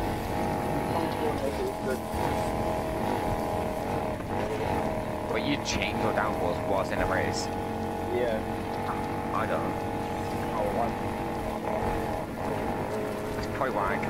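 A car engine roars steadily at high speed.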